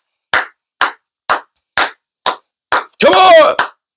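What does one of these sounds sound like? A man claps his hands in a steady rhythm.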